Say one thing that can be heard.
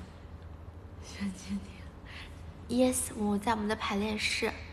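A young woman speaks cheerfully and close up.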